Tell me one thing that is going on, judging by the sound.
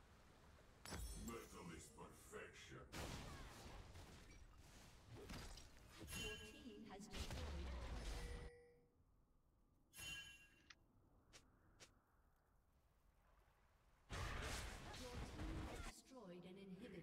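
Game spells and weapons clash and boom in a battle.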